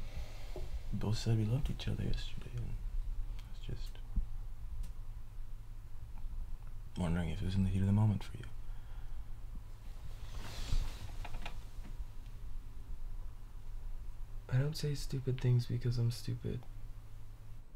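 A man speaks softly and close.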